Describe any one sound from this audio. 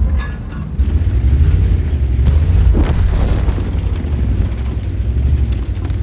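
A heavy tank engine rumbles low and steady as tracks roll over rubble.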